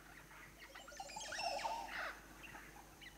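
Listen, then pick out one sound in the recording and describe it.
A large bird calls nearby with loud gurgling notes.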